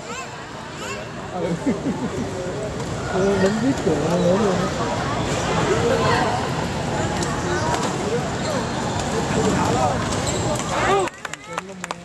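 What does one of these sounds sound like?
Badminton rackets hit a shuttlecock with sharp pops.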